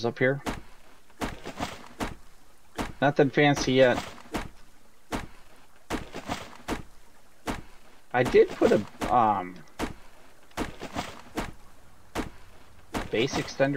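An axe chops into a tree trunk with sharp knocks.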